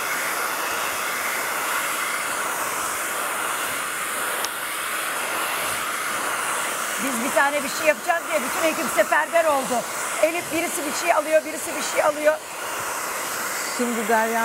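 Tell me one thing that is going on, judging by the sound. A hair dryer blows with a steady whoosh.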